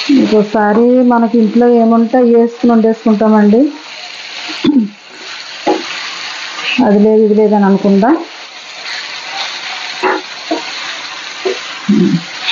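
A metal spoon scrapes and taps against a pan.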